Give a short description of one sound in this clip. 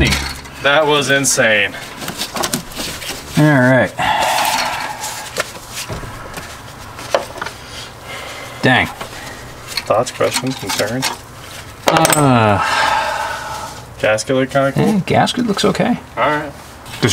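Metal tools clink against engine parts.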